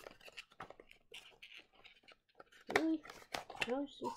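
Paper rustles as a leaflet is unfolded.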